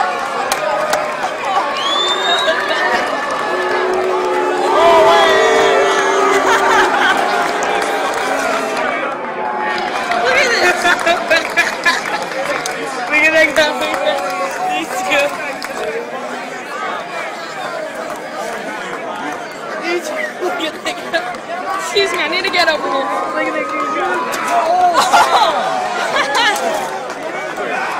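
A large crowd chatters and cheers from close by.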